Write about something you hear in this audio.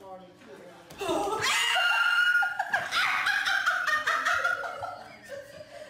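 A woman laughs and shouts loudly.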